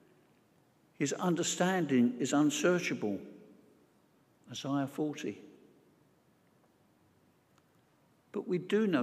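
An elderly man speaks calmly and slowly into a microphone in a reverberant hall.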